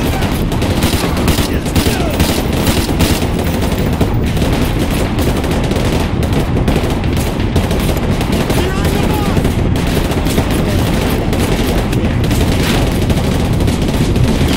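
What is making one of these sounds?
Rapid machine gun fire rattles loudly and without pause.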